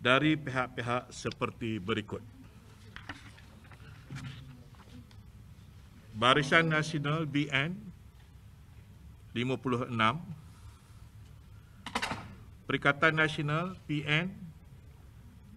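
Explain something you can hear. A man speaks calmly into microphones, with pauses between phrases.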